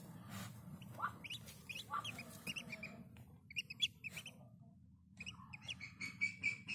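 Ducklings peep softly and high.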